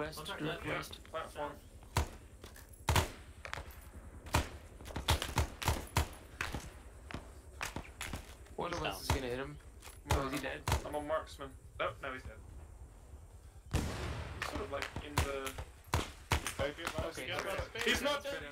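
Gunshots crack sharply, one after another.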